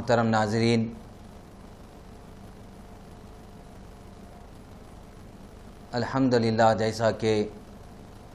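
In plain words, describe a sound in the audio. A man chants in a slow, melodic voice close to a microphone, with a long pause between phrases.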